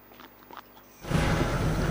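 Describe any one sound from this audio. A train rumbles loudly along a track.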